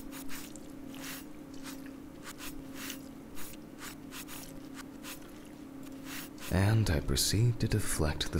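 A blade slices wetly through flesh.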